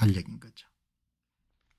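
An older man speaks calmly into a close microphone.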